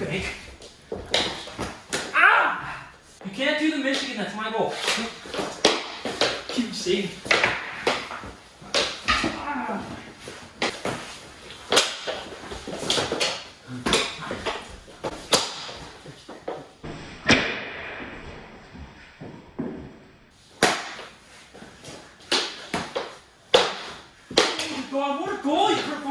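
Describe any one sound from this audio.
A young man shouts and talks excitedly.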